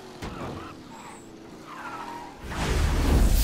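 A car engine hums while driving.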